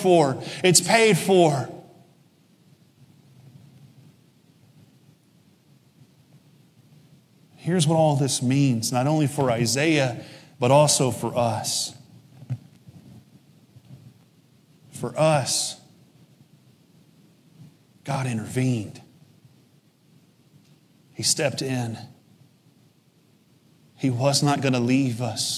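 A man speaks through a microphone in short bursts with long pauses.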